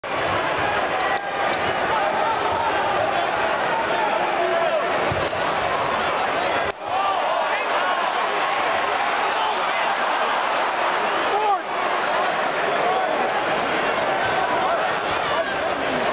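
A large crowd roars and cheers loudly in a big echoing arena.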